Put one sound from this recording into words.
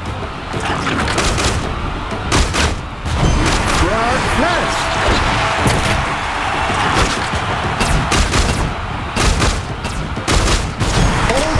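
Explosions boom.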